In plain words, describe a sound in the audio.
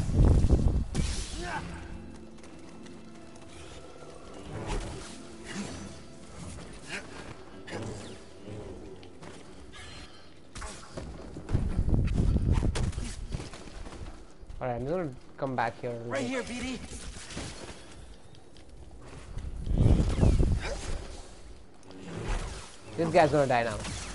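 A lightsaber strikes a creature with sizzling hits.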